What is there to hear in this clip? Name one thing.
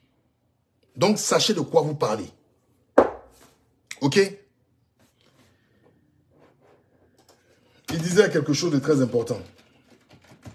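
A man speaks calmly and close up, in short bursts with pauses.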